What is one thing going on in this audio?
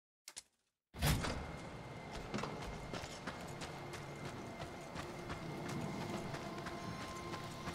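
Footsteps crunch on a hard, gritty floor as someone runs.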